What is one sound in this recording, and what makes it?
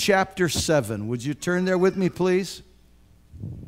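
An elderly man speaks loudly through a microphone.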